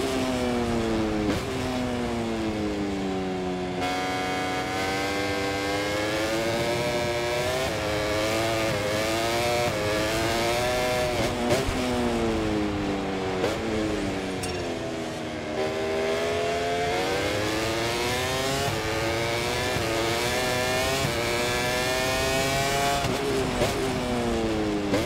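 A motorcycle engine screams at high revs, rising and falling as gears shift.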